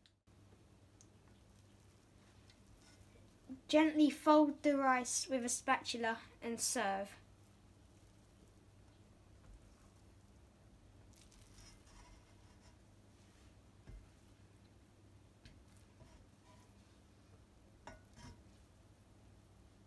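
A spatula softly scrapes and stirs rice in a pan.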